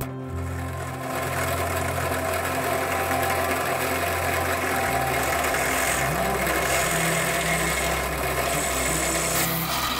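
Wood chips grind and rasp under the drill bit.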